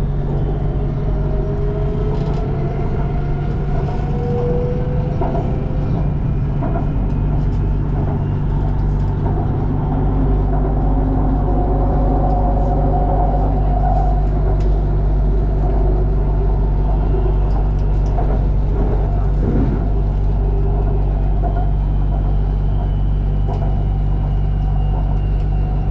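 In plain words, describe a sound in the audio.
A train rumbles steadily along a raised track.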